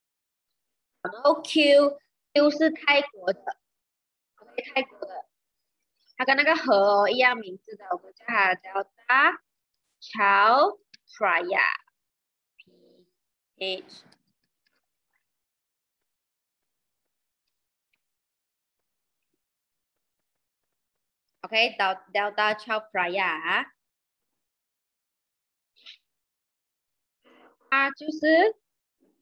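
A young woman speaks calmly and close to a microphone, as on an online call.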